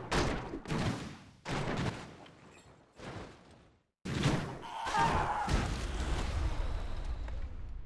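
Swords and blows clash in a noisy fight.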